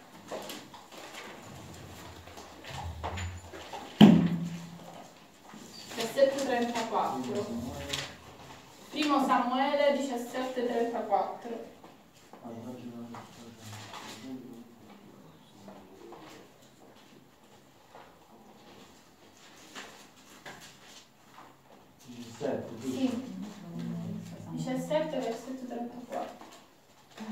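A young woman reads aloud clearly, with pauses.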